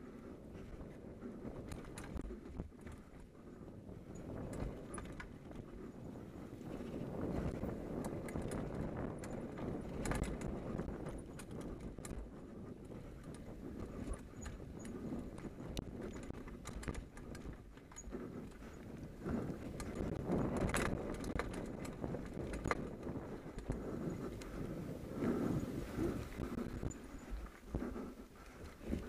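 Bicycle tyres roll and crunch over a leaf-covered dirt trail.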